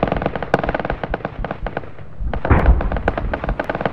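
A heavy explosion booms.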